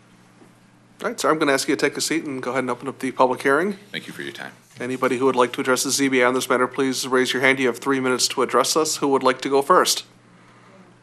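A man speaks steadily into a microphone in a large room.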